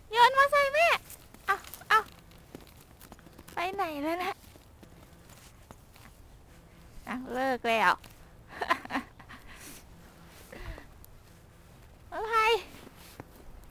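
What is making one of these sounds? A young child speaks and squeals in short high bursts, close by.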